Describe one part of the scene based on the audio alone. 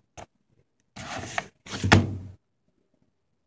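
Glossy magazine pages rustle as they are turned.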